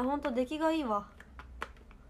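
A young woman speaks in a high, sing-song voice close to a microphone.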